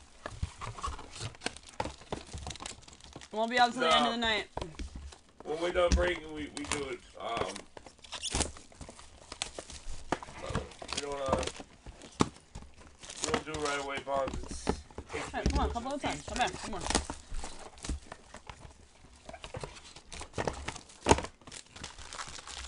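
Plastic wrapping crinkles and rustles as it is handled.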